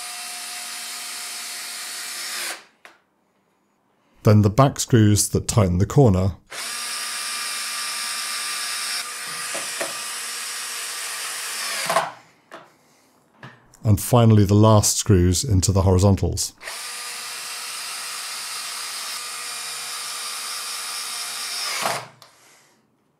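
A cordless drill whirs steadily as it drives screws in, in several bursts.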